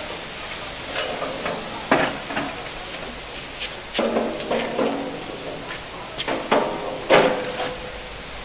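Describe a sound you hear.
Men talk to one another outdoors.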